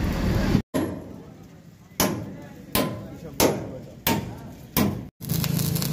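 Sharp metal hammer blows ring out one after another.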